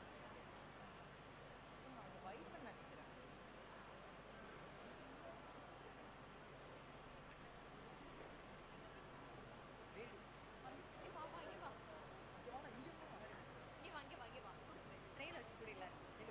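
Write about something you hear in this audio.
Men and women talk quietly nearby.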